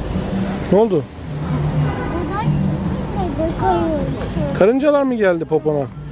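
A boy talks close by.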